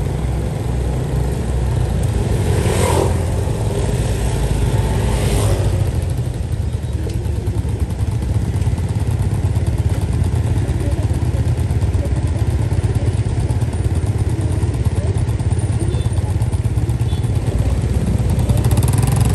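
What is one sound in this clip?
Motorbike engines hum steadily close by.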